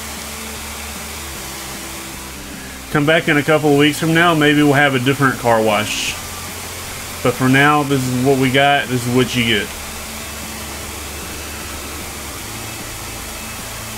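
A pressure washer sprays with a steady hiss.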